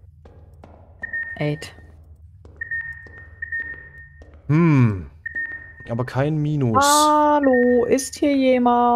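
An electronic meter beeps in short, high, steady tones.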